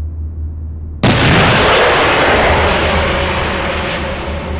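Heavy guns fire a loud, booming blast that roars on and slowly fades.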